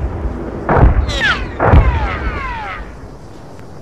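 Rockets whoosh from a plane.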